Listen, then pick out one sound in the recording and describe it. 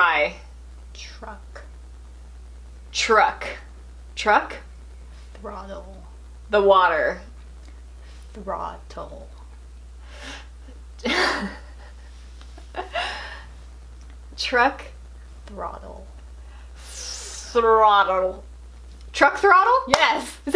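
A young woman speaks in short, animated bursts close by.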